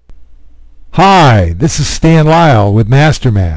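An older man speaks with animation close to a headset microphone.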